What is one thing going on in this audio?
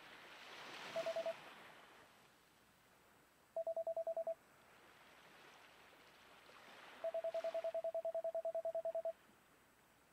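Rapid short electronic beeps chirp in quick bursts.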